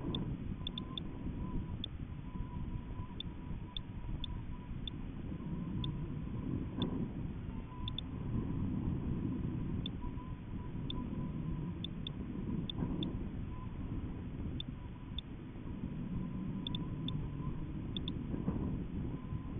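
Wind buffets and rumbles steadily against the microphone.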